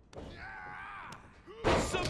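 A heavy body slams down onto a wrestling mat.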